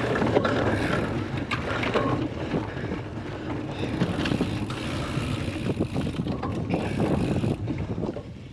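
Bicycle tyres rumble and bump over a muddy grass track.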